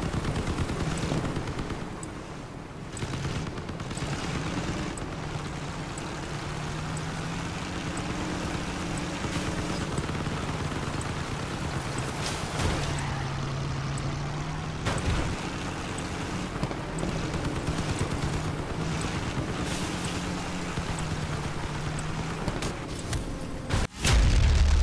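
A vehicle engine hums and revs steadily as it drives over rough ground.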